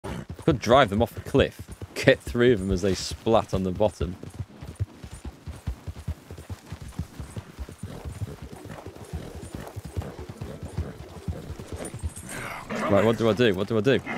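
Horse hooves thud quickly on grassy ground.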